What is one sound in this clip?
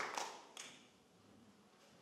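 A brass band finishes a loud chord that rings out and fades in a large hall.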